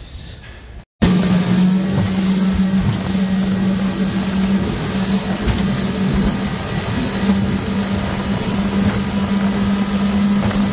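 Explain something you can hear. A boat motor drones steadily at speed.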